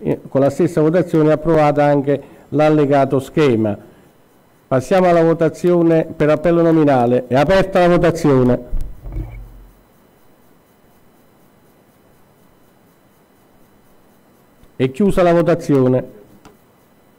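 An elderly man speaks calmly into a microphone, reading out.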